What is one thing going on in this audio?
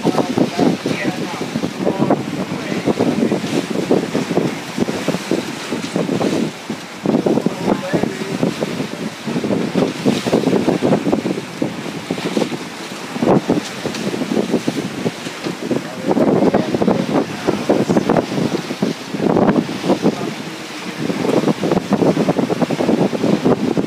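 Wind buffets loudly outdoors on open water.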